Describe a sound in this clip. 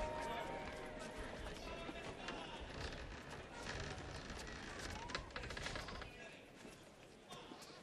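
Footsteps shuffle on a stone floor.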